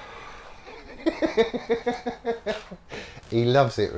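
An older man laughs heartily nearby.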